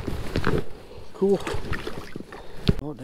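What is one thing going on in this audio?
A fish splashes into water.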